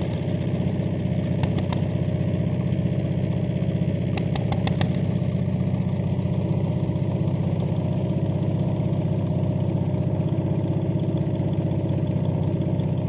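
A small boat engine chugs steadily up close.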